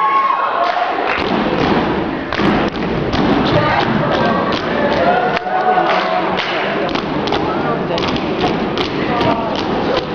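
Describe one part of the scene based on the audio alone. Dancers stomp their feet hard on a wooden stage in rhythm.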